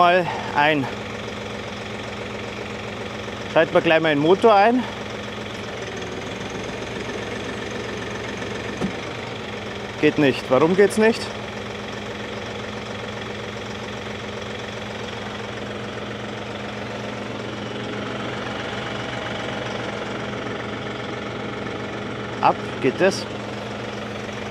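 A tractor engine idles with a steady low hum.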